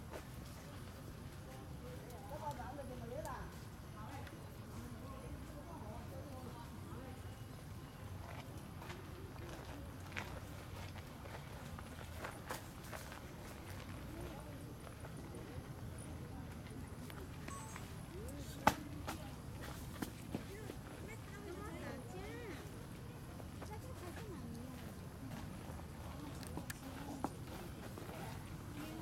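Dry leaves rustle faintly as monkeys shift on the ground.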